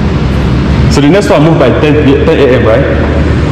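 A man talks with animation close by, in a large echoing room.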